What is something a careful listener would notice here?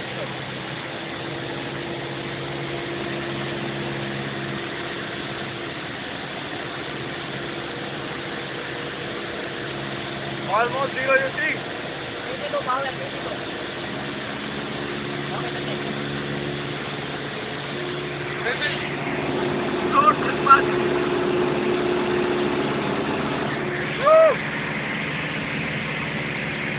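A small plane's engine drones steadily throughout.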